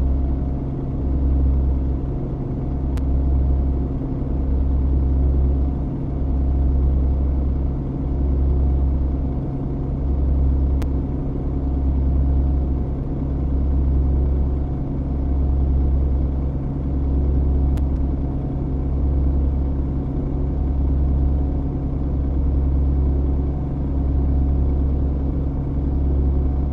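A diesel truck engine drones while cruising at highway speed.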